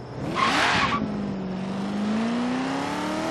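A car engine hums and rises steadily as the car speeds up.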